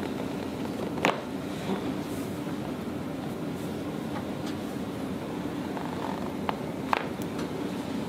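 A back joint cracks with a sharp pop.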